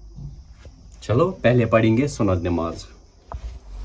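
A young man speaks briefly and with animation, close by.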